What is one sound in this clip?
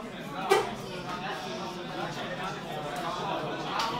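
A deck of playing cards is shuffled by hand.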